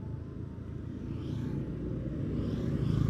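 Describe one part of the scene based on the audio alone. Two motorcycles ride past close by.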